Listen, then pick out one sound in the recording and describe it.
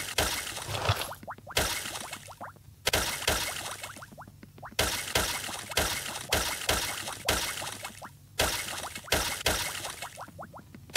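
Crunching digging bursts repeat in a quick, steady rhythm.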